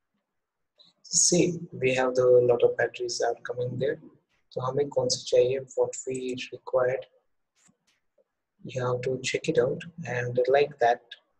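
A young man explains calmly and close up through a microphone.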